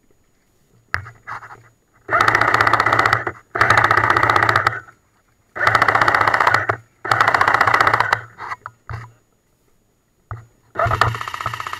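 An airsoft rifle fires in long rapid bursts close by.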